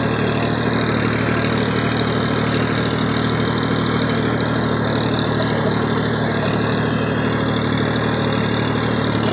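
Tractor tyres crunch over loose dry soil.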